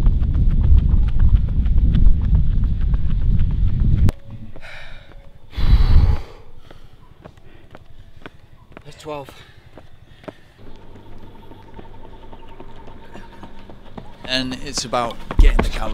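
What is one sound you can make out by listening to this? Running footsteps slap steadily on a paved road.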